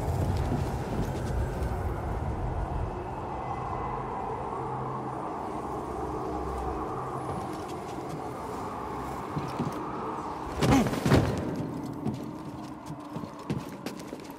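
Footsteps tap on hard stone.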